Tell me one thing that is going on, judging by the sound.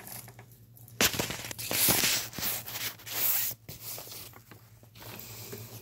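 Fabric rustles and rubs against a phone microphone close by.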